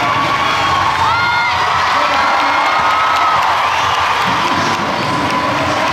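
A crowd cheers and shouts in a large echoing hall.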